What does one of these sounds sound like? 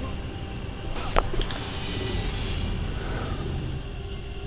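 Blades swish through the air with a sharp whoosh.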